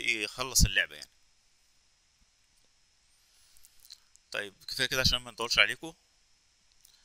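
A man speaks calmly into a microphone, heard as on an online call.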